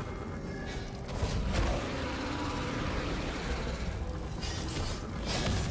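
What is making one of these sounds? Magical spell effects whoosh and crackle.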